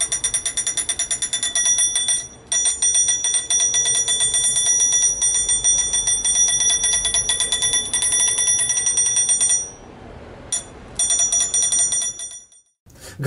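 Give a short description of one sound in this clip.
A small electric buzzer rattles rapidly against a metal bowl with a ringing tone.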